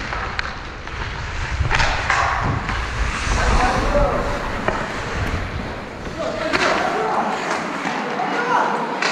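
Skate blades scrape across ice up close.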